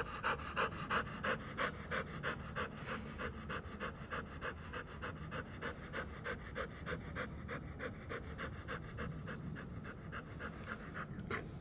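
A dog pants quickly and steadily close by.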